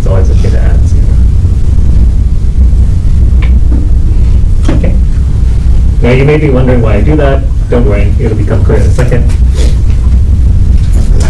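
A young man lectures calmly in a slightly echoing room.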